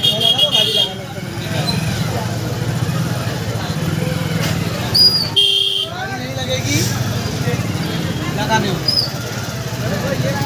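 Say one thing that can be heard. Motorcycle engines idle and rumble in a busy street.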